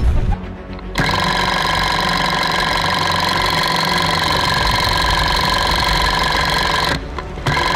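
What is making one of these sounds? A motor hums steadily.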